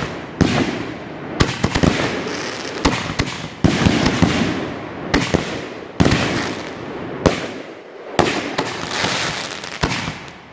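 Fireworks burst with loud booms that echo outdoors.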